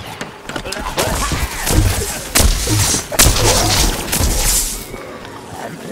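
Loud gunfire and explosions burst in quick succession.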